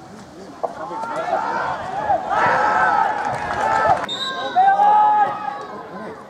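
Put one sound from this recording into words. A crowd of spectators shouts and cheers outdoors, growing louder.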